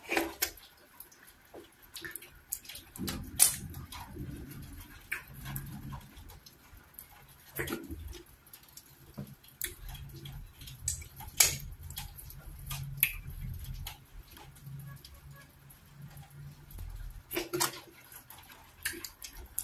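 A woman chews food wetly close to a microphone.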